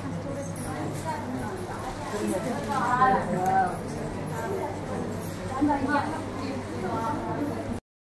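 A woman laughs and talks warmly with another woman.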